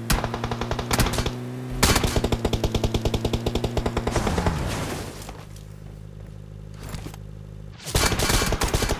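An off-road vehicle engine drives over rough ground, then idles.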